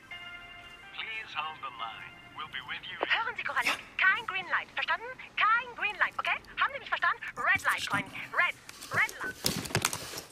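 A man speaks quietly into a phone.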